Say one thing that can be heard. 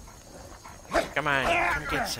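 A dog growls and barks as it runs up.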